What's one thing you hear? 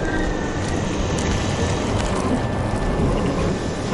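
A small fire crackles and flickers.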